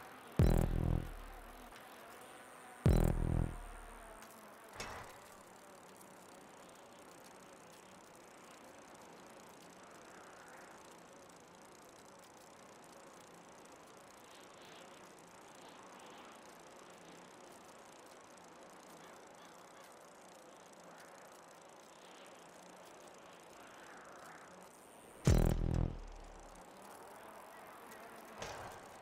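A bicycle rolls steadily over a hard surface.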